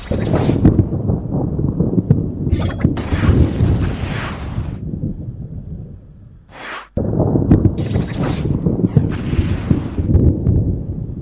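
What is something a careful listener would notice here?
Game spell effects whoosh and crackle during a battle.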